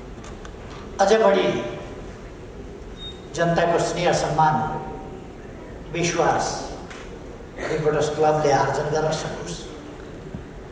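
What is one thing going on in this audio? An elderly man speaks slowly and deliberately into microphones, in short phrases with pauses.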